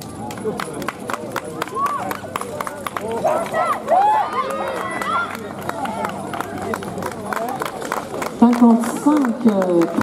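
Horses' hooves thud and clatter on turf at a trot.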